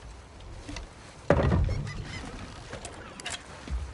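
An oar splashes through water.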